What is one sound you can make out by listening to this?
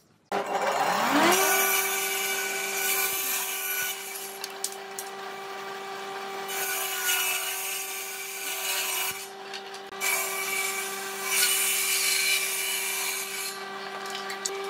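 A table saw blade rips through wood with a rough buzz.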